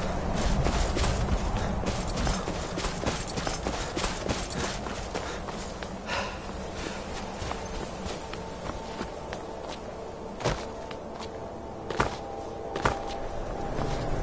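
Wind howls steadily through a snowstorm.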